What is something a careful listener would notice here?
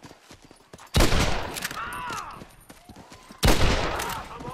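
A gun fires loud shots that echo.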